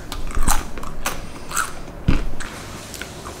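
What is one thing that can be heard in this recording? A young woman crunches a crisp chip close to a microphone.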